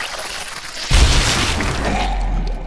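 A bullet strikes a body with a heavy thud.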